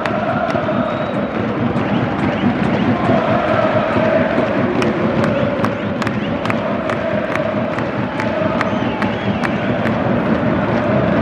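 A person claps hands close by in a steady rhythm.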